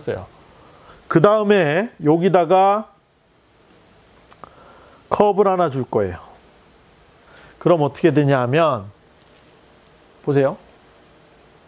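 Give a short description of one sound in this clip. A man speaks calmly in short phrases, with a slight room echo.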